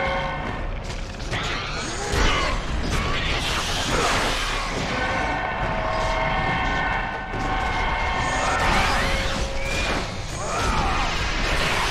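Fire bursts and crackles.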